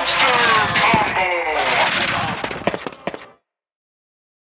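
Bubbly video game sound effects play with falling, swooping tones, then cut off.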